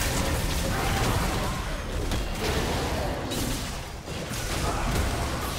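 Spell effects whoosh and crackle in a fast battle.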